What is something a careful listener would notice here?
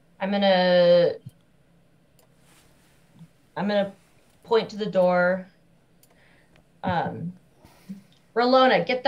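A woman speaks with animation in short bursts over an online call.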